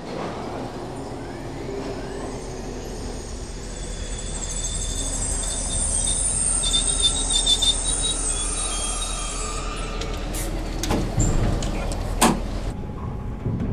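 A model train rumbles along its track.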